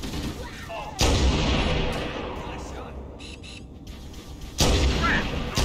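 A rifle fires with loud, sharp cracks.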